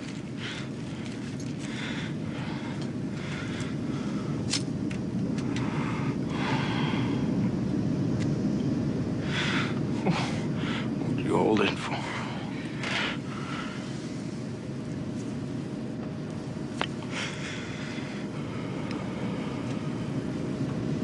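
A woman speaks softly and anxiously close by.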